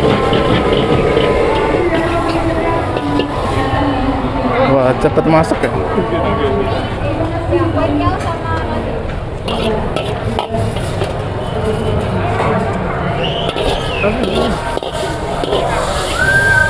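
Food sizzles in a hot wok.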